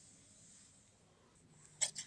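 An iron glides softly over fabric.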